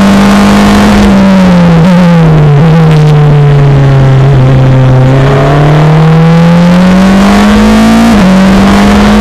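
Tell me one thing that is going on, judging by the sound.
A Formula Renault race car engine drops in pitch through downshifts and rises again as it accelerates.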